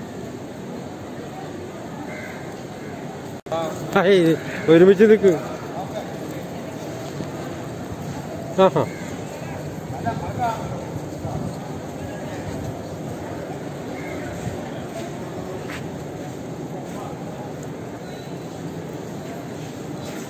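A crowd murmurs outdoors in the distance.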